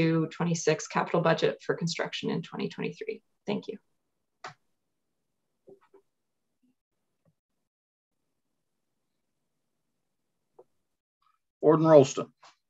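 A woman reads out calmly over an online call.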